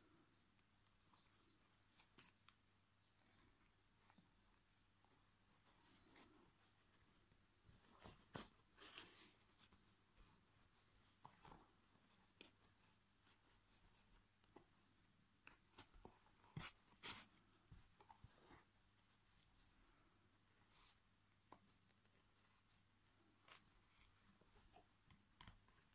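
Yarn and fabric rustle softly as hands sew a crocheted piece.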